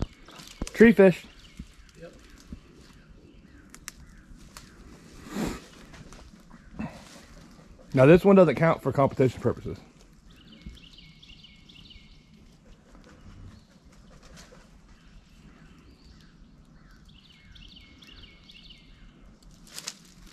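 Rocks crunch and clatter underfoot.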